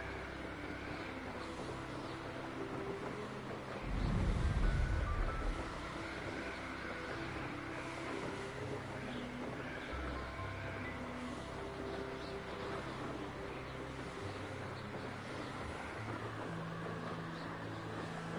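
Wind rushes past steadily during fast flight.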